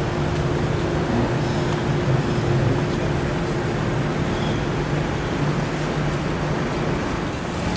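A crowd of men and women murmur and talk nearby.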